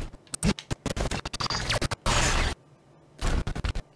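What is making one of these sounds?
An explosion bursts.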